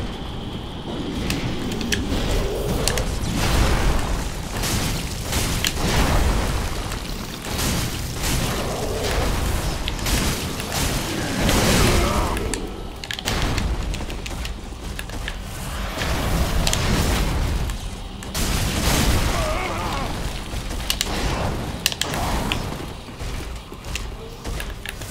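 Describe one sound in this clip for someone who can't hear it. Metal weapons clash and clang repeatedly in a fight.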